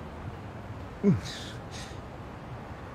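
A man groans in pain.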